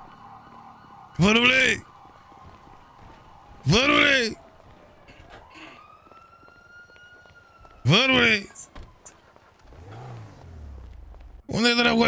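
Footsteps run down stone steps and across pavement.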